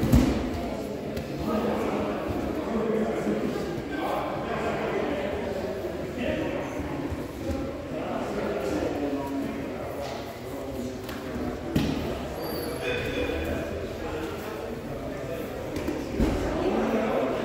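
Bodies thump and shuffle on padded mats.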